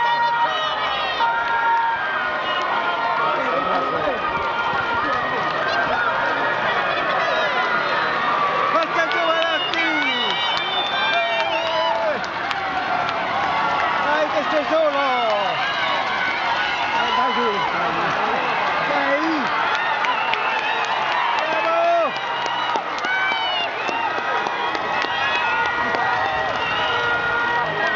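A large outdoor crowd cheers and shouts throughout.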